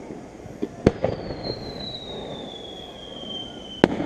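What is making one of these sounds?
A firework rocket whistles as it rises.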